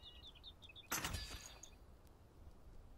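A game chime rings as an item is crafted.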